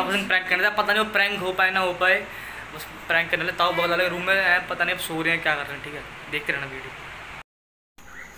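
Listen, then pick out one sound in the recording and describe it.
A teenage boy talks with animation close to the microphone.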